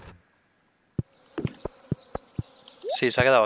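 Short game menu clicks tick several times.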